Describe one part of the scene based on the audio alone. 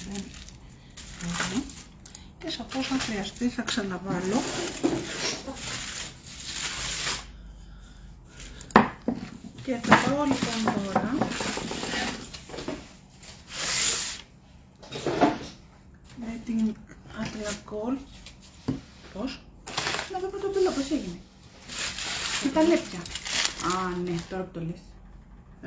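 Foil crinkles and rustles in hands.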